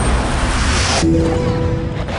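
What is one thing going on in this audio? A magic spell bursts with a loud sparkling whoosh.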